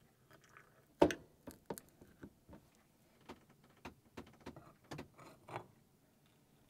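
A spoon clinks against a mug while stirring.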